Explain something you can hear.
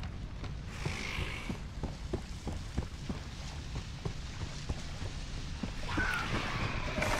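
Footsteps thud on wooden planks at a steady walking pace.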